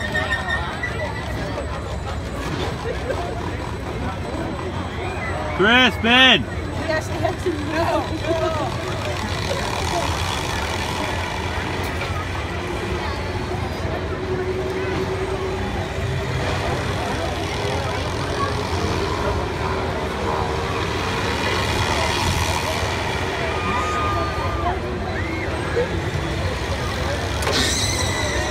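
A fairground swing ride rumbles as it spins.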